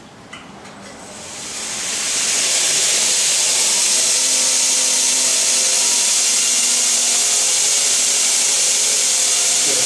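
A belt grinder starts up and whirs loudly and steadily.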